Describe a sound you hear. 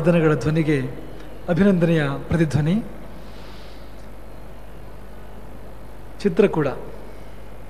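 A man speaks calmly with pauses into a microphone.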